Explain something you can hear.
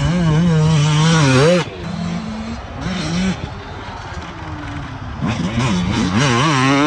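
A dirt bike engine roars close by, revving up and down.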